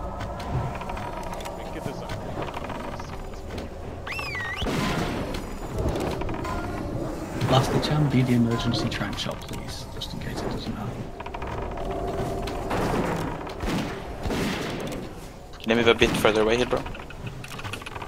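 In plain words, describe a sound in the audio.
Spell effects whoosh and clash in a fast fantasy battle.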